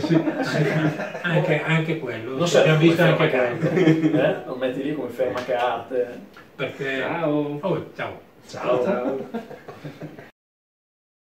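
Several men talk and laugh together nearby.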